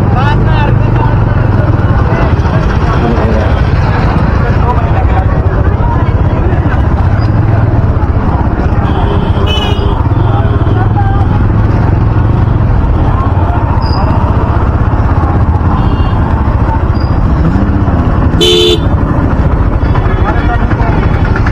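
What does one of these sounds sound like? Motorcycle and auto-rickshaw engines hum along a busy street.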